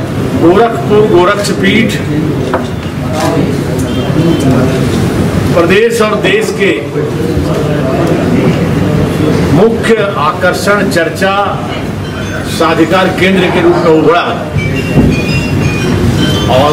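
A middle-aged man speaks steadily into several microphones.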